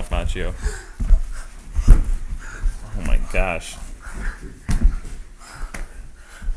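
Footsteps thump on a floor.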